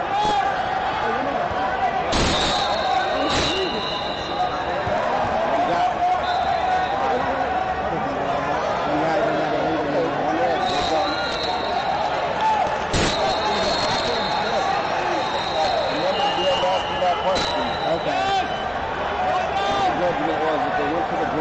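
A crowd chatters and murmurs throughout a large echoing hall.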